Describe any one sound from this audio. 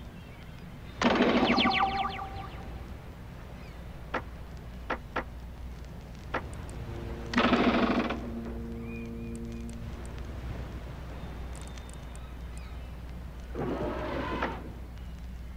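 Game menu chimes ring out as options are selected.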